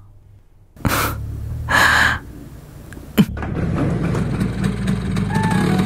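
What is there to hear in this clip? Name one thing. A scooter engine idles nearby.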